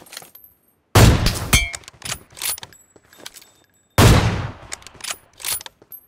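A rifle fires loud single shots that ring out and echo.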